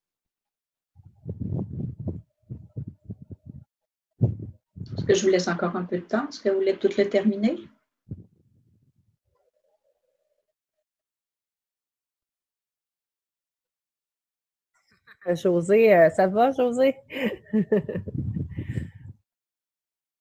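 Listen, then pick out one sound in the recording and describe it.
A woman speaks calmly through a microphone, in short bursts with pauses.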